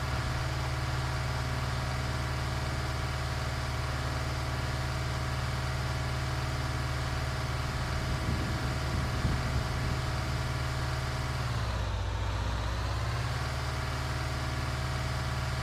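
A heavy engine hums steadily, dipping briefly in pitch.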